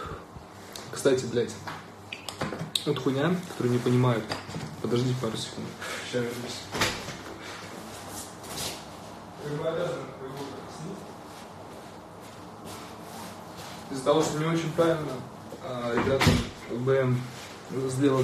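A young man talks casually and close into a phone microphone.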